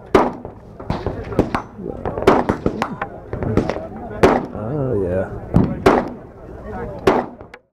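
A pistol fires a series of sharp, loud shots outdoors.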